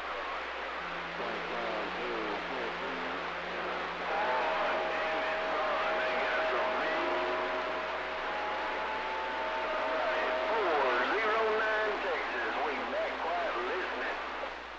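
Warbling whistles and steady tones come through a radio receiver.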